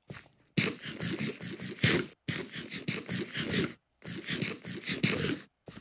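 Leafy bushes rustle and crunch as they are broken.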